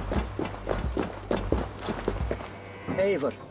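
Footsteps thud over grass.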